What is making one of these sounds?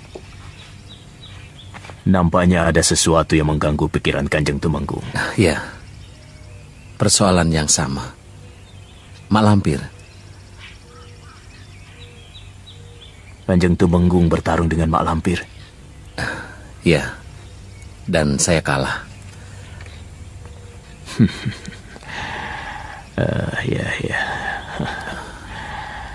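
An older man answers calmly, close by.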